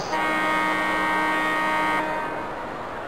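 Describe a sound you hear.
A loud arena horn sounds at the end of a period.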